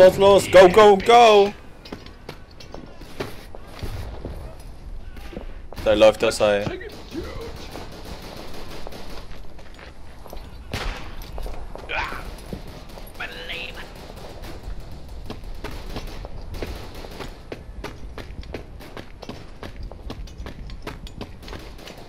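Footsteps tread over dirt and grass.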